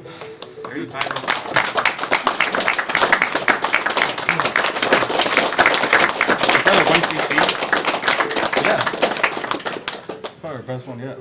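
A crowd claps and cheers loudly in a room.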